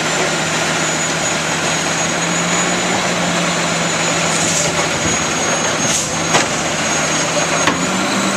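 A garbage truck's hydraulic arm whines and clanks.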